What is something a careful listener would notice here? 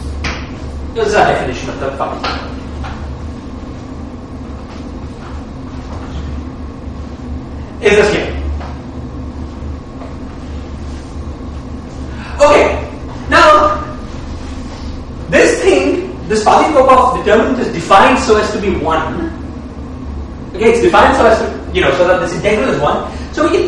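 A man lectures calmly and clearly, in bursts with pauses.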